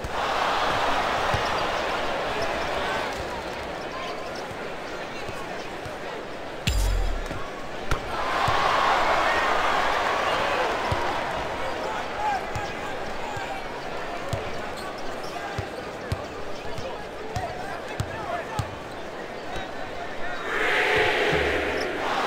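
A crowd roars and cheers in a large arena, swelling loudly at times.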